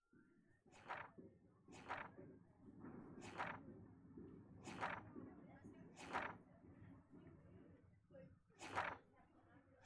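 Paper pages flip one after another.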